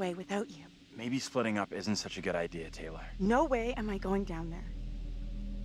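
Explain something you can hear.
Another young man answers tensely.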